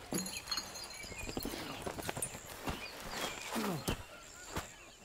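A man speaks in a low voice close by.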